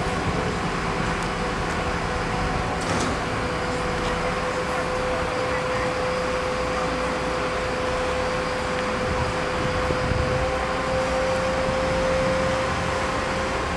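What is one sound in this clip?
A crane's engine drones steadily.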